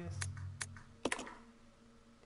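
A metal switch clicks into place.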